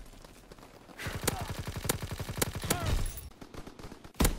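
A video game submachine gun fires rapid bursts.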